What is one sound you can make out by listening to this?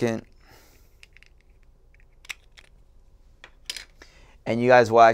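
Small plastic parts click as a device is handled.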